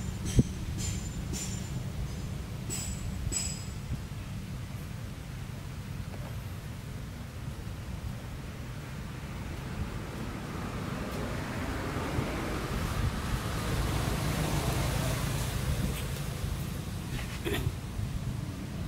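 Wind blows softly outdoors through trees.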